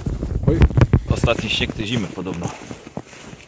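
A man speaks nearby outdoors.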